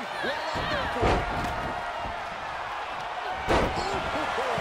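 Heavy bodies slam hard onto a wrestling mat.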